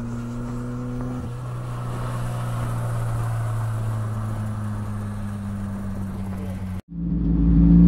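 A race car engine hums as the car drives past outdoors.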